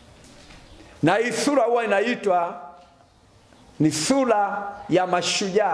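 A man speaks loudly and with feeling, close by, in bursts with pauses between.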